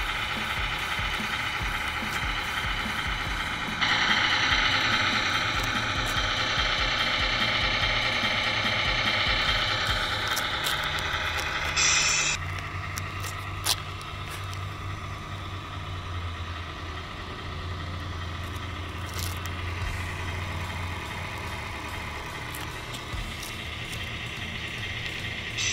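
A small truck engine idles with a steady low rumble.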